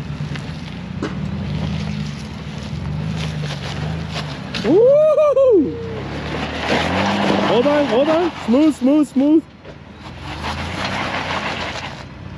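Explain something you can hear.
Tyres grind and crunch over rock and snow.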